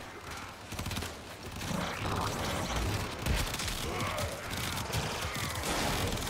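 Blades slash and strike in a fast game fight.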